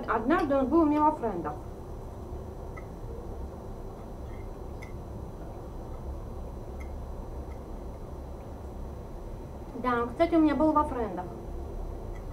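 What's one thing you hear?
A fork scrapes and clinks on a plate.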